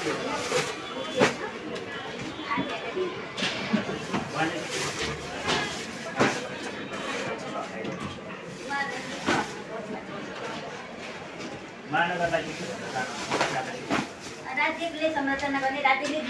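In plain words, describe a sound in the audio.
Books rustle as they are dropped into a plastic sack.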